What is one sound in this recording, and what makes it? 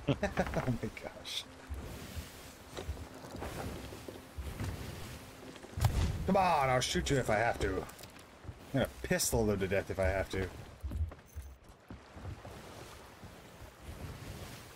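Waves crash and roll against a wooden ship.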